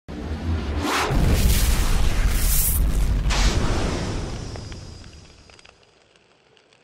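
A fiery blast roars loudly and then slowly fades away.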